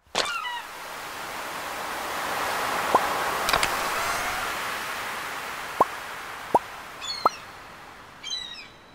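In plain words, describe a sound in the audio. Water laps gently and steadily.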